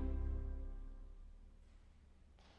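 A pipe organ chord rings out and fades away in a large echoing hall.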